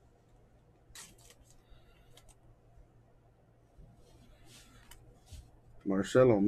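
Glossy trading cards slide and flick between fingers.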